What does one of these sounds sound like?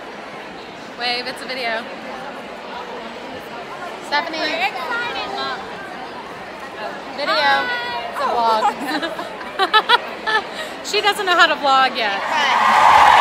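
Young women talk and exclaim excitedly close by.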